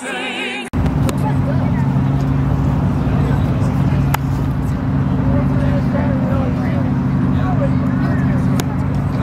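An engine rumbles steadily close by.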